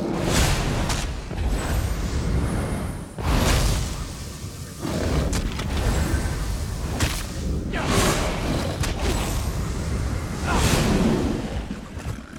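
Fire spells burst and roar in loud whooshes.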